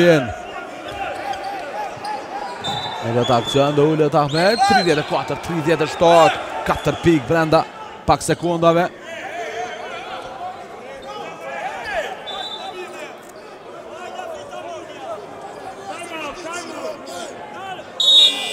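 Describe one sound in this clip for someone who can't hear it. A man shouts instructions loudly.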